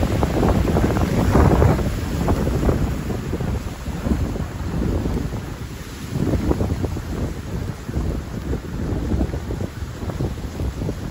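Wind blows in strong gusts outdoors, buffeting loudly.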